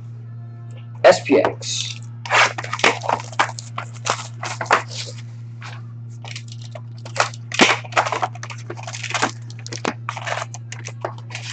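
Plastic wrapping crinkles and tears as a box is opened.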